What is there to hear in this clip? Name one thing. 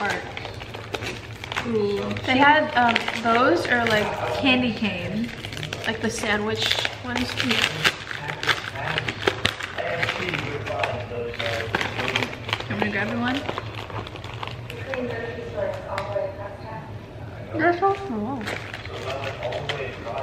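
A second young woman talks and answers close by.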